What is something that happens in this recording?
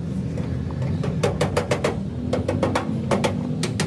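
A hammer taps rapidly on metal.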